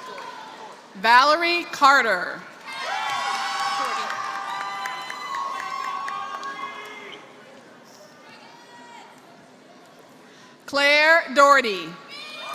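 People whoop and cheer loudly.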